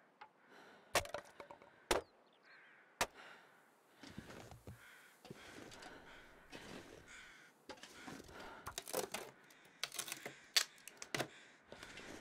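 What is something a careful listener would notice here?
Wood cracks and knocks as something is broken apart.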